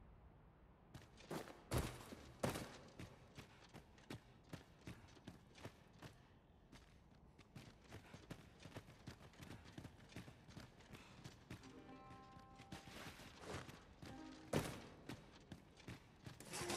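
Footsteps crunch steadily on gritty ground.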